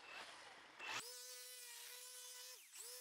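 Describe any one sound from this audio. A small petrol engine runs with a steady, high buzzing hum.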